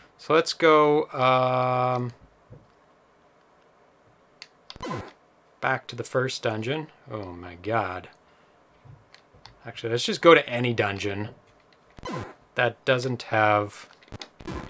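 Electronic game tones beep and warble in short bursts.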